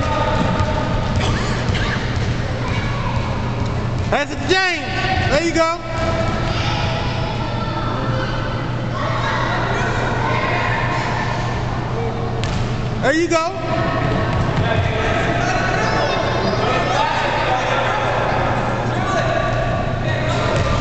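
Young children shout and chatter in a large echoing hall.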